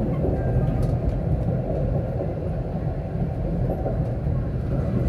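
A tram rumbles steadily along its rails.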